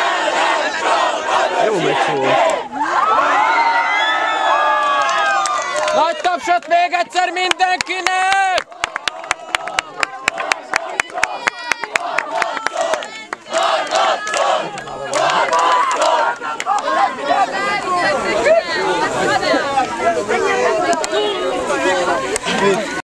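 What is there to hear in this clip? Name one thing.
A crowd of young people sings and chants loudly outdoors.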